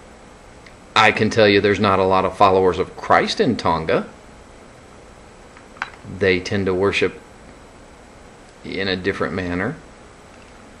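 A middle-aged man talks calmly and close up, with pauses.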